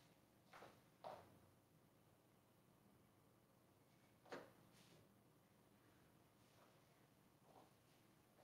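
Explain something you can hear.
Footsteps thud faintly in a distant room.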